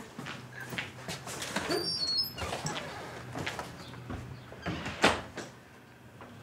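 A man's footsteps thud across the floor.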